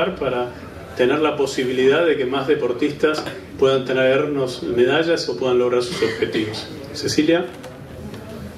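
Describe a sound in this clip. An elderly man speaks calmly into a microphone over loudspeakers in an echoing hall.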